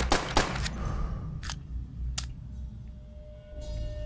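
A pistol is reloaded with metallic clicks.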